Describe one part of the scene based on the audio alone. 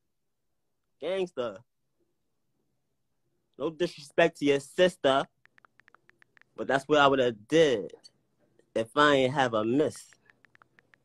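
A young man talks casually and close up into a phone microphone, in short bursts.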